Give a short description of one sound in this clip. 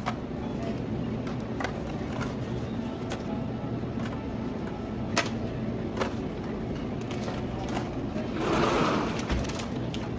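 Plastic food boxes clatter into a shopping basket.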